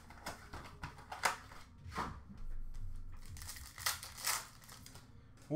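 Plastic card packs rustle and tap as hands handle them.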